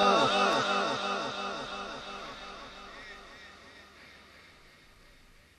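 A man chants slowly into a microphone, heard through loudspeakers with a heavy repeating echo that fades away.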